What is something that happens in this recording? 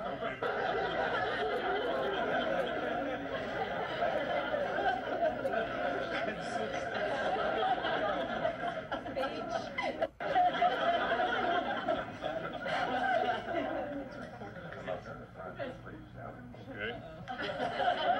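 A middle-aged man talks and laughs nearby.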